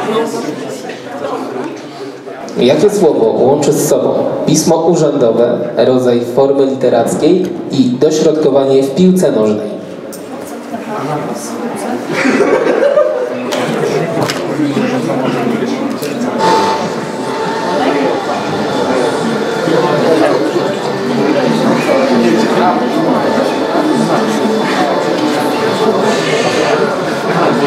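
A crowd of young people chatters indoors.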